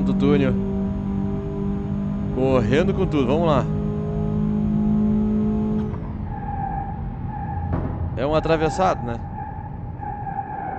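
A car engine drones loudly at high speed.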